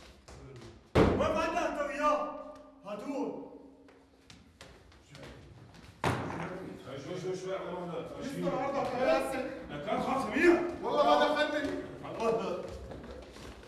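Men shout and argue in a scuffle.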